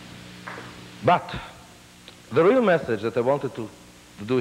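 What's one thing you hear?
A middle-aged man speaks slowly and with feeling through a lapel microphone.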